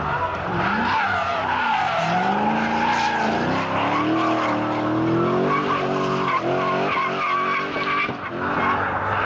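Tyres screech as a car slides around a bend.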